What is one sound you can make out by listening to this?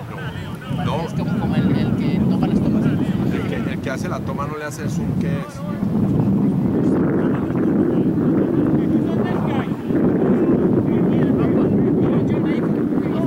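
Wind rumbles across the open field.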